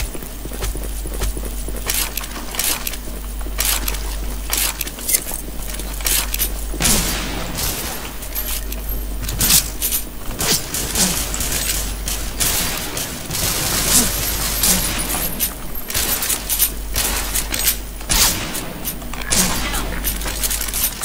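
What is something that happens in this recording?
Footsteps patter on a hard floor.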